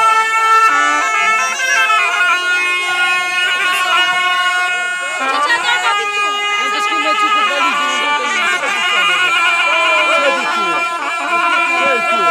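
Reed pipes play a loud, wavering folk melody close by, outdoors.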